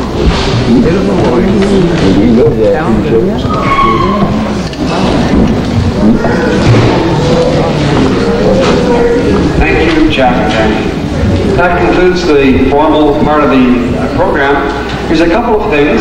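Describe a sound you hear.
A middle-aged man speaks through a microphone in a large echoing hall.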